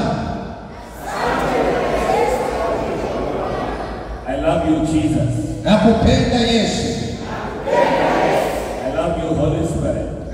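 A second man speaks into a microphone over loudspeakers.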